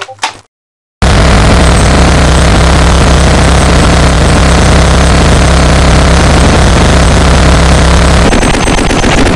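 A submachine gun fires a long, rapid burst.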